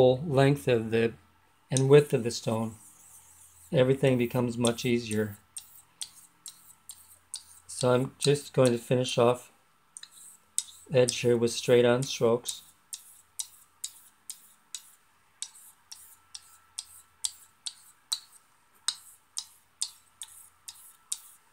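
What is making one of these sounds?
A finger taps lightly on a wooden block.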